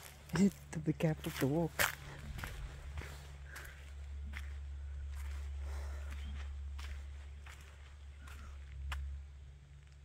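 Footsteps crunch on dry leaves and gravel.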